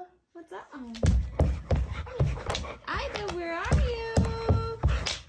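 A dog's paws thump on the floor.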